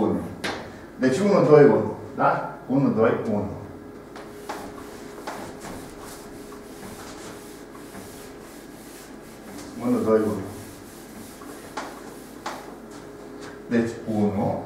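Chalk taps and scratches on a blackboard.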